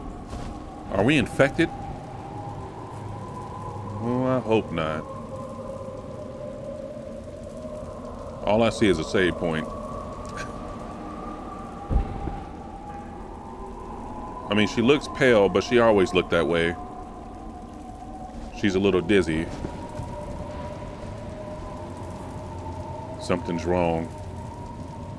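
A man talks in short bursts close to a microphone.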